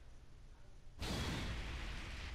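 An explosion bursts with a loud roar.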